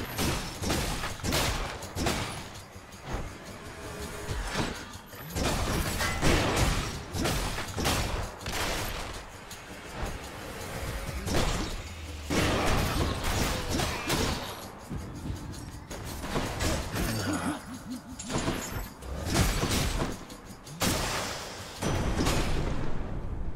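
Sword slashes and hits clang in quick bursts.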